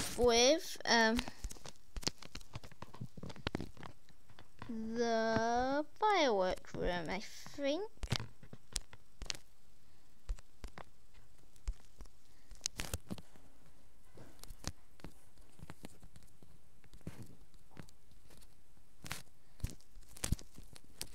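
Soft interface clicks sound as items are moved.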